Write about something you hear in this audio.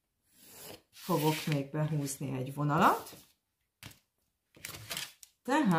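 Paper rustles as a sheet slides across a table.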